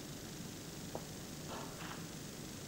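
Snooker balls click together on the table.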